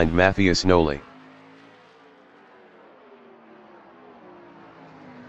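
Race car engines hum faintly in the distance.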